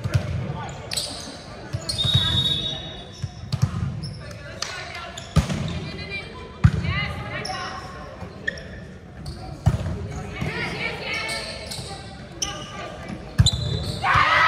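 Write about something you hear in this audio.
A volleyball thuds off hands and arms in an echoing hall.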